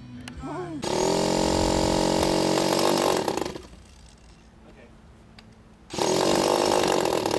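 A small engine buzzes steadily close by.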